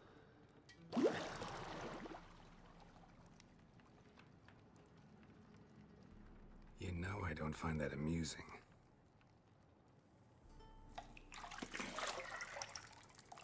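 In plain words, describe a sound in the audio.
Water splashes in a wooden tub.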